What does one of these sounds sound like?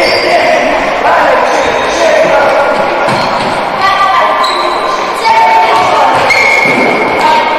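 Young men shout to each other across an echoing hall.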